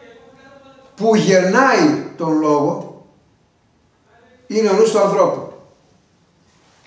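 An elderly man speaks with animation close to a microphone.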